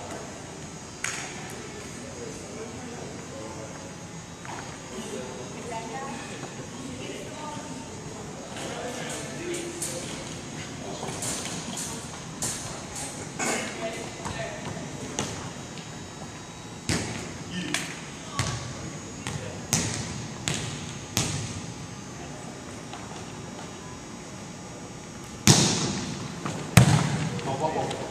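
A volleyball thumps off players' hands and forearms in a large echoing gym.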